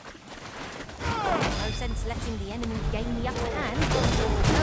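A blade swishes and strikes during a fight.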